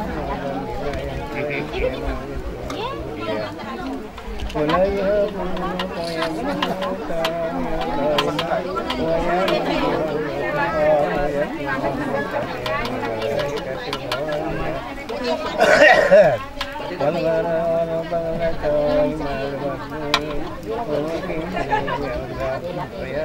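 An elderly man chants a recitation in a steady, melodic voice.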